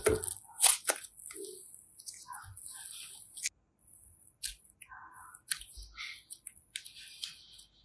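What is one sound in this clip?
Soft clay squishes and crackles between fingers.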